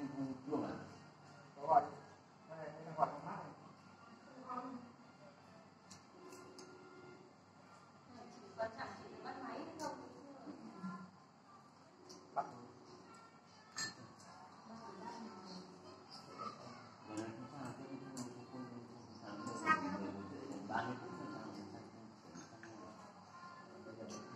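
Several men and women talk and chat casually close by.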